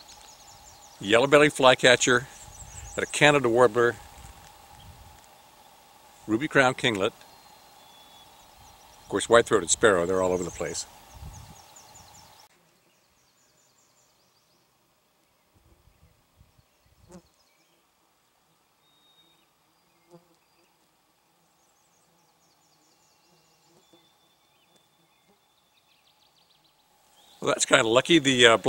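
An older man talks calmly and close by, outdoors.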